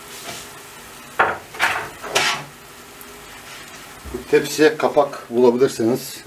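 A wooden spatula scrapes around a metal pan.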